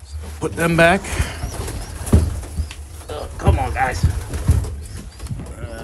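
A plastic bucket knocks and scrapes against wooden boards.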